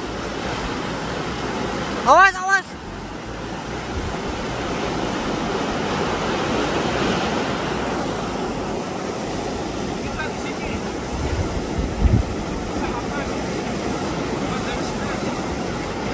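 Waves crash and wash over rocks outdoors.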